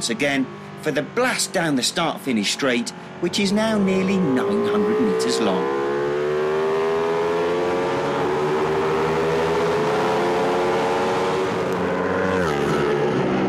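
A motorcycle engine roars at high revs, rising and dropping as it shifts gears.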